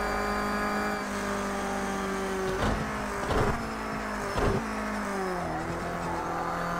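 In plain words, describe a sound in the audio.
A car engine drops in pitch as it slows for a bend.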